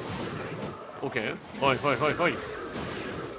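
Monsters growl and screech.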